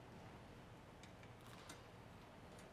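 A metal vessel clinks softly against a table.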